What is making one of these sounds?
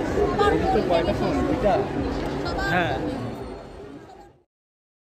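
A crowd of people chatters and calls out across a busy outdoor fair.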